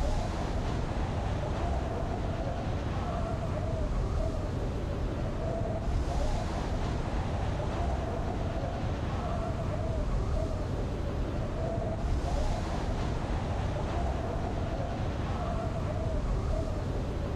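Wind rushes loudly and steadily past a falling skydiver.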